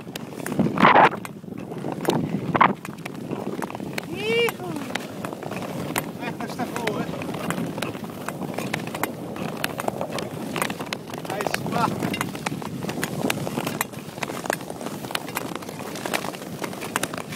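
Ice skate blades scrape and hiss rhythmically across smooth ice.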